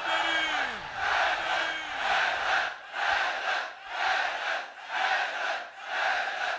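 A large crowd chants together in a steady rhythm.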